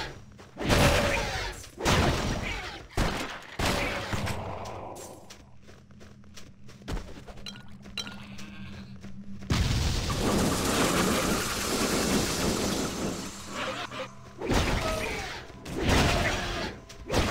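Creatures shriek as they are hit.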